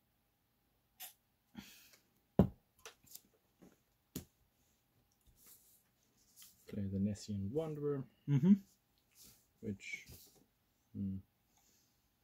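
Playing cards tap and slide softly onto a table.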